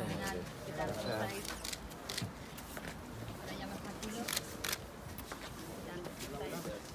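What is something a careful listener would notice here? Several men and women talk and greet each other nearby, outdoors.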